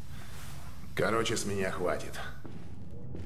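An older man speaks gruffly, close by.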